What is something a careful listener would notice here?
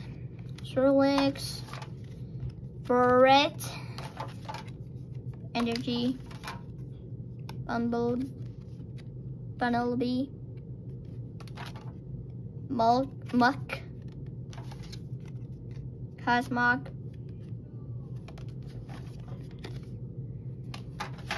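Stiff playing cards rustle and flick as hands sort through them.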